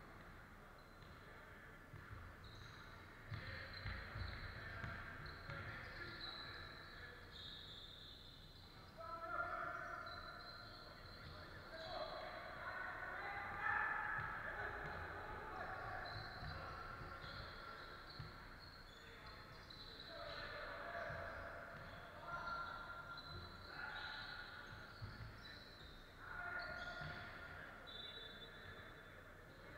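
Basketball shoes squeak sharply on a wooden floor in a large echoing hall.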